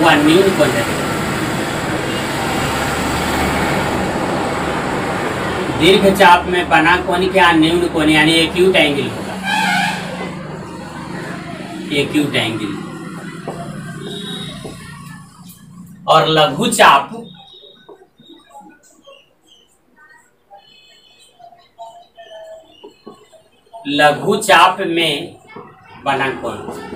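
A man speaks calmly, as if explaining a lesson.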